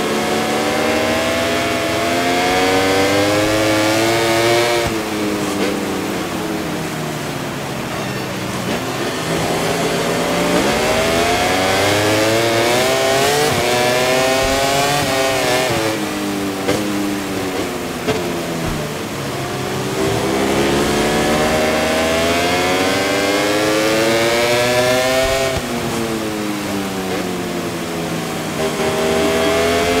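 A motorcycle engine revs high, its pitch rising and dropping again and again.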